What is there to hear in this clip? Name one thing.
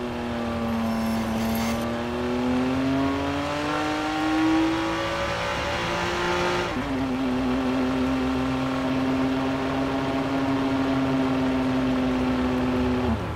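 A sports car engine accelerates, its pitch climbing and then dropping at a gear change.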